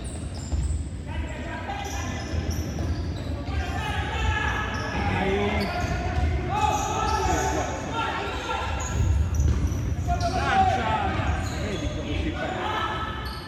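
Sneakers squeak sharply on a wooden court.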